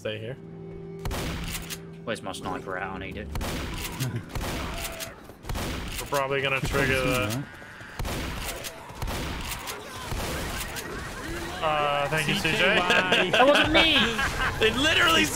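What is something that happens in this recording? Shotgun blasts boom again and again.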